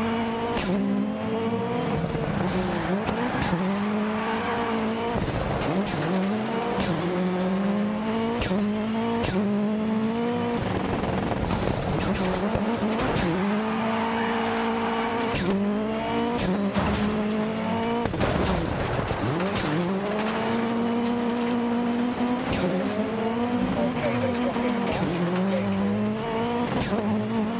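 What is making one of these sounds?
A rallycross car engine revs hard, rising and dropping through quick gear changes.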